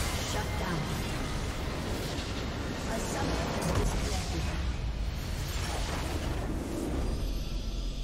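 Video game spell effects whoosh and clash during a battle.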